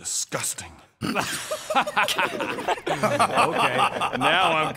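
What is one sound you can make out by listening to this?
Several people laugh heartily together.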